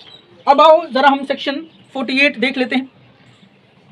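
A young man speaks clearly into a clip-on microphone.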